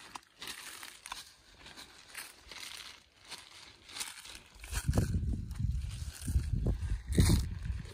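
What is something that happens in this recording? Pruning shears snip twigs with sharp clicks.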